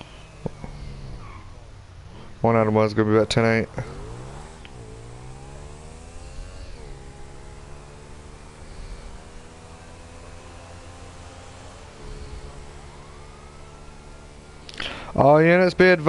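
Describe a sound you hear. A motorcycle engine hums steadily, its pitch rising and dropping as it shifts gears.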